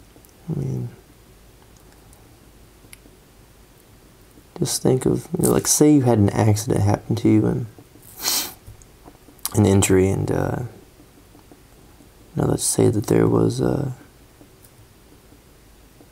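A felt-tip pen scratches and taps lightly on paper.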